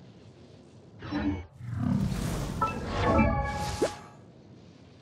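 Electric attacks crackle and whoosh in a game fight.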